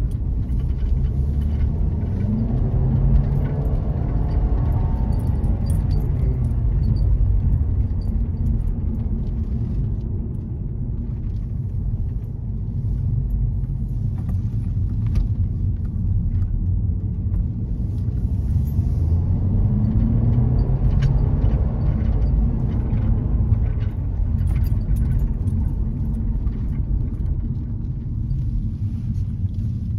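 A car's engine hums and tyres rumble on asphalt, heard from inside the cabin.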